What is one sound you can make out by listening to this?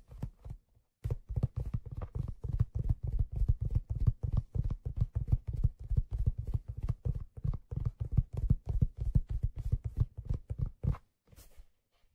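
Fingers tap quickly and softly on a hollow object close by.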